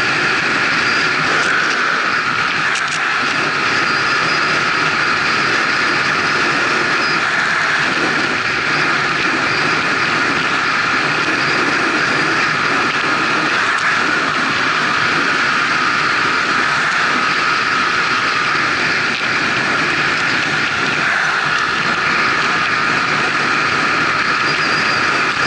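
Wind rushes loudly and steadily past at high speed.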